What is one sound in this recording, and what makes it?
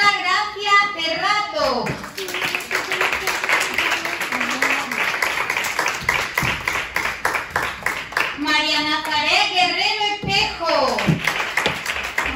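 Young children sing together in high voices.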